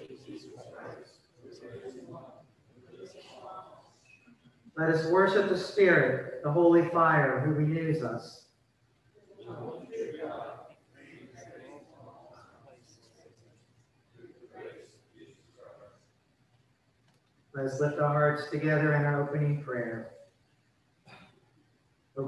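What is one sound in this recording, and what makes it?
An elderly man reads out calmly through a microphone.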